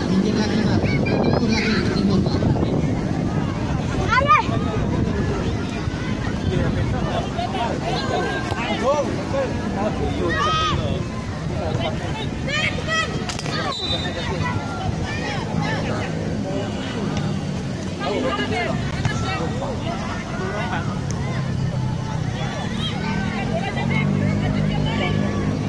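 A crowd of spectators shouts and cheers in the distance outdoors.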